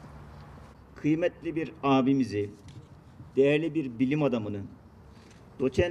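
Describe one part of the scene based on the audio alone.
A man speaks calmly into a microphone, heard over a loudspeaker outdoors.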